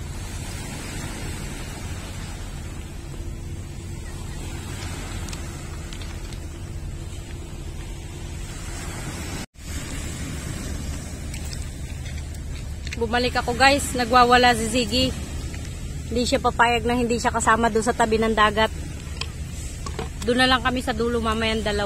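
Small waves wash onto a pebble shore.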